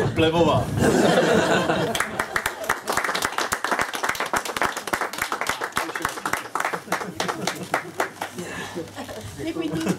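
A small crowd claps and cheers.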